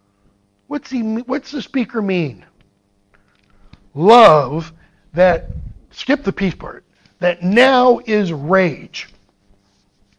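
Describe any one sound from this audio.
A man speaks as if lecturing, heard through a microphone.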